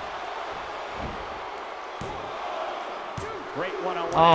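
A referee slaps the mat three times.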